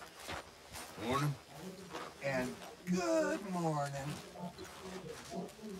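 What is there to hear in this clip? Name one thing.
A man speaks in a hoarse, weary voice nearby.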